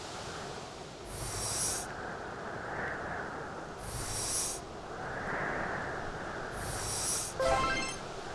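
A whooshing game effect sounds as a figure slides across ice.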